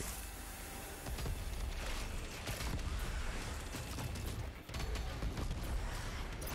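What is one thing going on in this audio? Heavy gunfire booms repeatedly.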